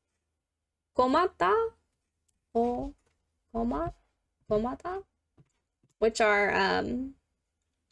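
A woman speaks slowly and clearly into a close microphone, pausing between short phrases.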